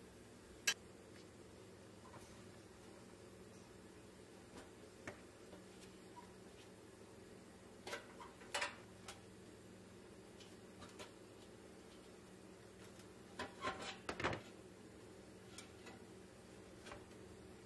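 Small metal parts click and clatter as a toy truck is handled.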